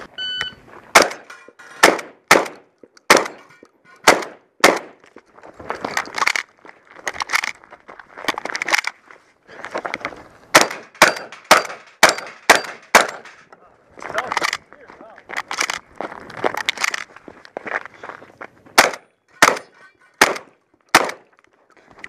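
Gunshots boom loudly and repeatedly, close by and in quick succession.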